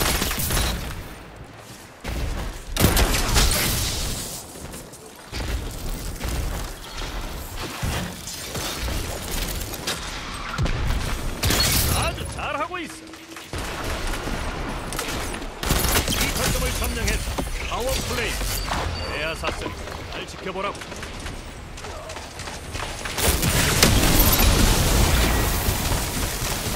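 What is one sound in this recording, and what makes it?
Guns fire in loud bursts of shots.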